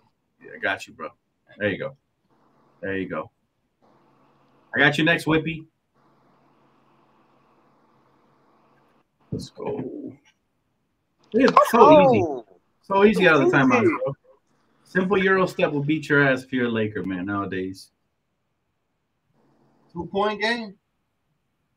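A man talks with animation over an online call, in bursts with pauses.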